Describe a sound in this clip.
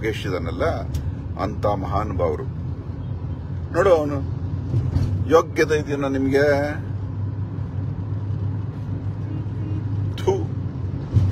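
A middle-aged man talks with animation close to a phone microphone, in short bursts with pauses.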